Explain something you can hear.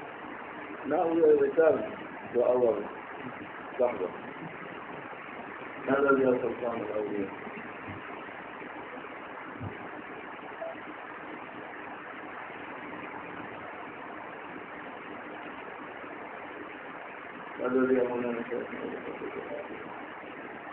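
An elderly man speaks slowly and calmly in short phrases, with long pauses.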